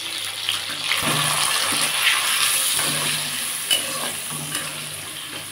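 A spatula scrapes and stirs food in a metal pan.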